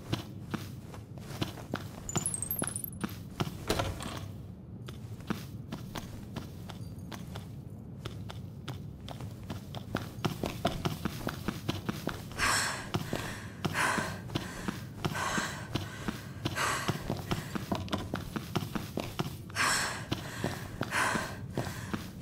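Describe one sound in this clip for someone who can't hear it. Footsteps tread slowly across a hard floor.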